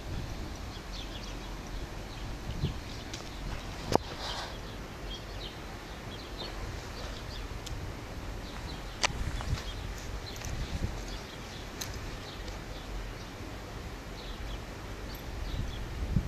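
A dog sniffs and snuffles close by.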